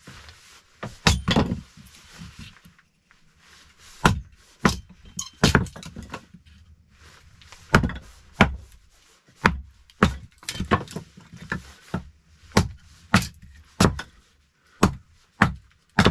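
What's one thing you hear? A hatchet chops into wood with sharp, repeated knocks.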